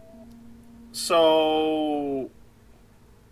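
A young man lets out a long, slightly falling drawn-out vocal sound.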